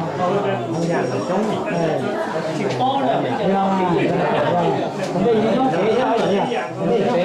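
A crowd of men and women chant and sing together.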